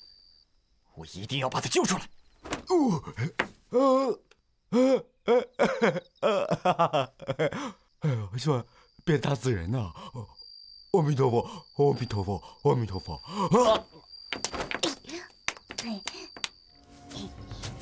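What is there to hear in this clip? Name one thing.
A man cries out in fright and chatters anxiously.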